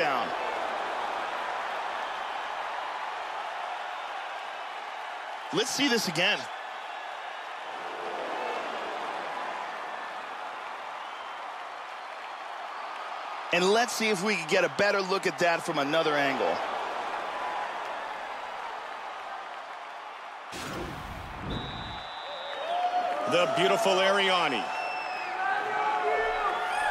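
A large crowd roars and cheers in a big echoing arena.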